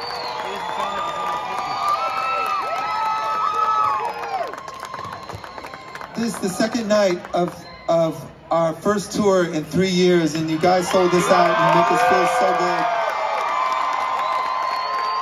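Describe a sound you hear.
A large crowd cheers and screams loudly outdoors.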